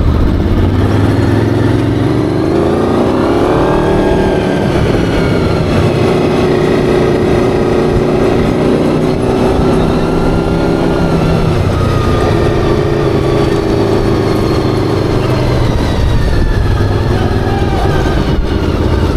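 A small engine revs loudly and rises and falls in pitch close by.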